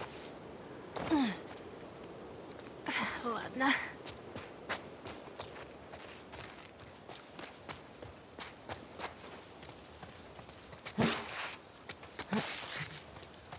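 Footsteps scuff and tap quickly on stone steps and wet ground.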